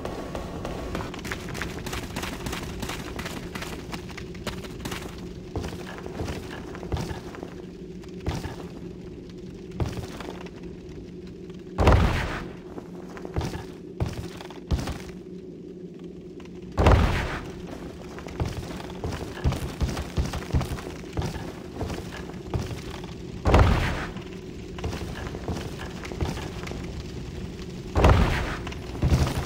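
Armoured footsteps clank and knock on wooden boards.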